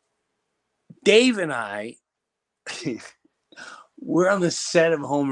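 A middle-aged man speaks expressively close to a microphone, his voice rising and falling.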